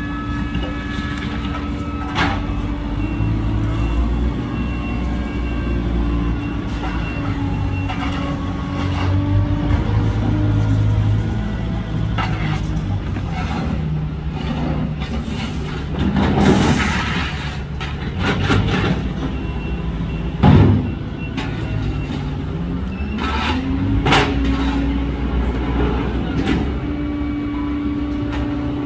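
A loader engine rumbles and hums steadily nearby, its pitch rising and falling as it works.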